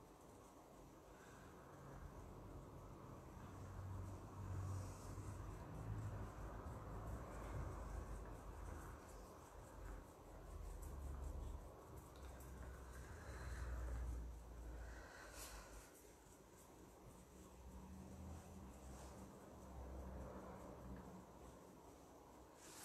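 A plastic bag crinkles and rustles as hands work it.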